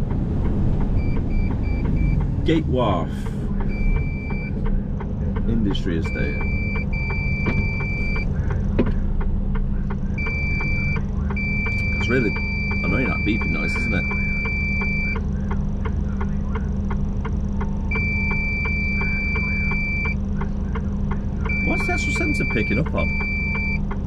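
A pedestrian crossing signal beeps in short repeated bursts.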